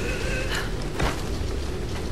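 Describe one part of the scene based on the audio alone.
Feet land with a thud on the ground.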